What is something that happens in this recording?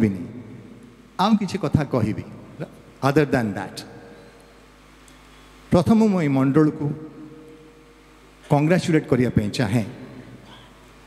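A middle-aged man speaks into a microphone in short bursts with pauses, heard through loudspeakers in a reverberant space.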